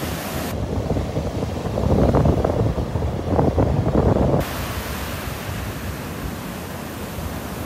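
Waves break and wash up onto the shore.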